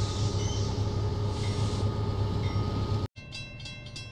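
A diesel locomotive engine rumbles steadily from inside the cab.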